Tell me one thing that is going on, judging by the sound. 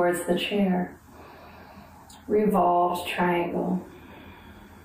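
A young woman speaks calmly and clearly close by.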